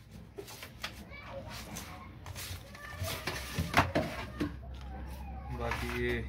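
Packaging rustles and scrapes as a man handles it.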